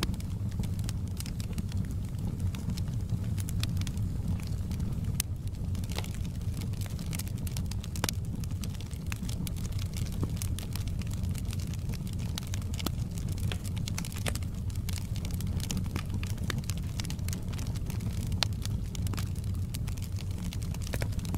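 A wood fire crackles and pops throughout.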